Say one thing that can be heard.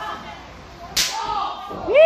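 A hard slap of a hand strikes bare skin.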